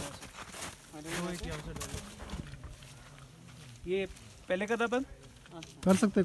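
Men talk with animation outdoors.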